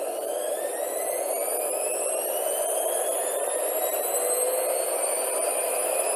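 A washing machine spins, its motor whine steadily rising in pitch.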